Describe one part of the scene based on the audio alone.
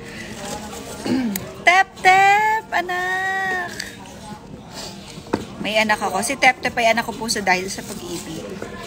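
A young woman speaks warmly and cheerfully close to a phone microphone.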